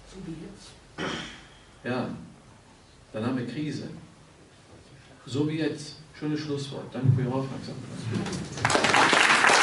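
An elderly man speaks calmly into a microphone, in pauses.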